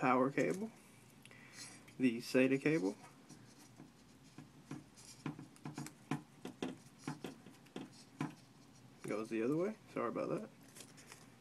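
Plastic connectors and cables click and rustle as they are handled.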